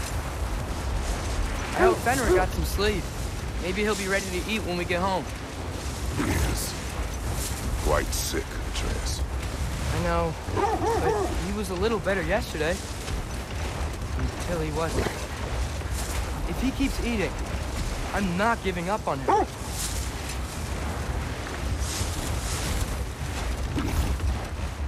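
A sled's runners hiss and rumble steadily over snow.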